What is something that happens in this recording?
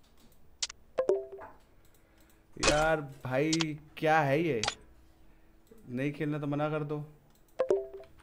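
A short electronic chime sounds as a menu button is tapped.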